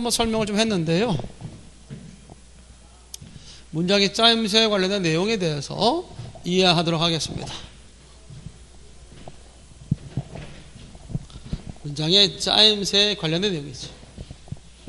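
A man lectures with animation through a microphone.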